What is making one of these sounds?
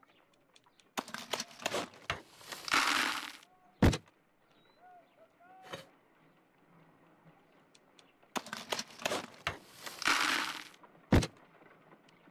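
Ice rattles and clatters in a wooden bucket.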